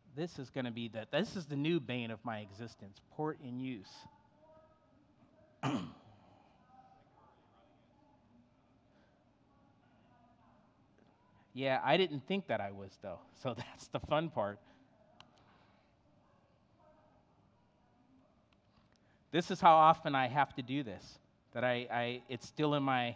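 A man speaks calmly into a microphone, in bursts with pauses.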